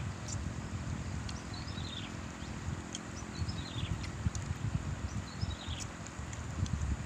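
A river flows and rushes steadily nearby.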